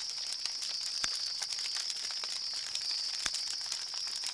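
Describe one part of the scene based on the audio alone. A menu clicks a few times.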